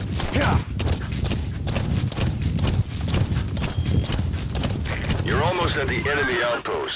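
A horse's hooves thud rapidly on a dirt track.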